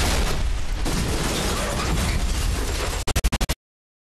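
Debris clatters and scatters around a crashing car.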